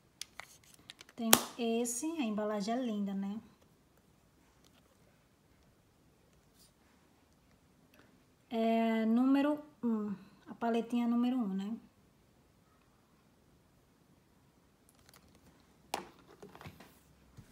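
A small plastic case clicks and rattles as hands turn it over.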